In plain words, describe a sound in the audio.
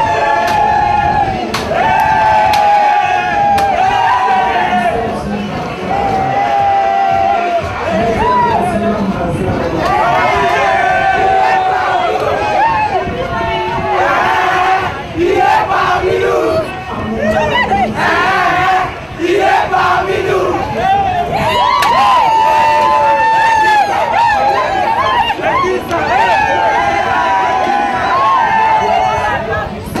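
A crowd of women sings loudly together.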